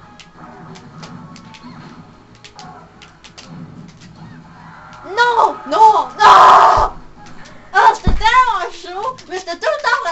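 Fighting game sound effects clash and thud from a television speaker.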